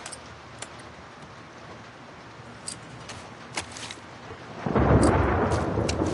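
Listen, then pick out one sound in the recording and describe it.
A revolver clicks and rattles as it is handled.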